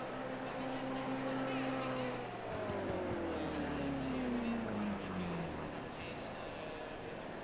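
A racing car engine hums steadily nearby.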